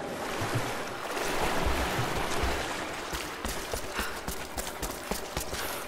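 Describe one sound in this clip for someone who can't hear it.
Wind rushes outdoors.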